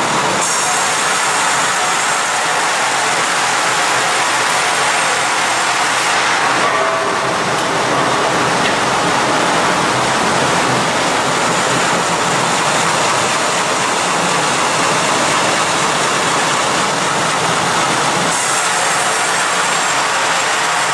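A heavy-timber band saw runs with a dense mechanical roar.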